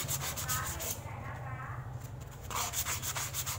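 Stiff paper rustles and crinkles as it is folded.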